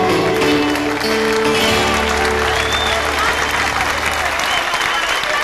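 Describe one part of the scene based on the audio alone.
Music from a stage rings out a final held note and stops.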